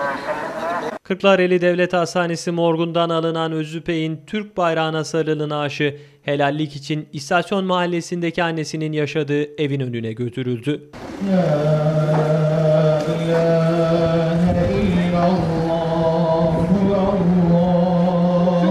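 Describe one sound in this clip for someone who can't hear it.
A man chants a prayer in a slow, drawn-out voice through a loudspeaker.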